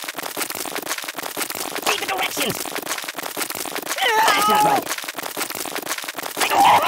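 Rapid small pops and crackles burst out in quick succession.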